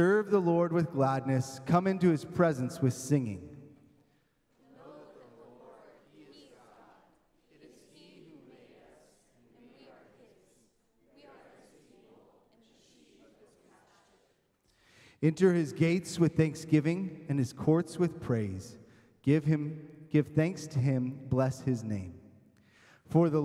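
A man sings into a microphone over loudspeakers in a large hall.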